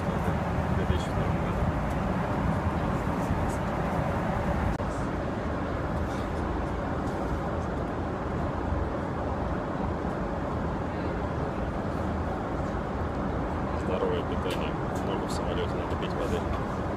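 A steady low roar of jet engines fills the air.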